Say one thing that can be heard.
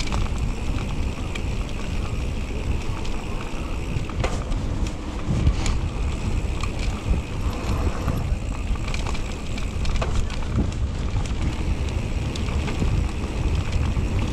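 Bicycle tyres roll and crunch over a bumpy dirt trail.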